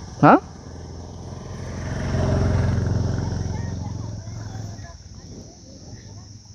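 A motorcycle engine idles and rumbles.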